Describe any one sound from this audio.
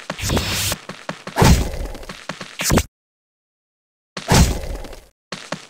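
Short game hit sounds tick rapidly.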